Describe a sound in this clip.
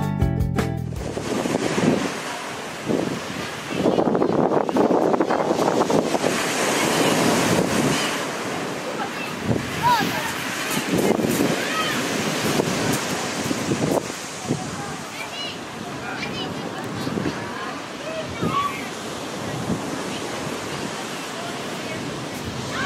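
Waves crash and roll onto a shingle beach.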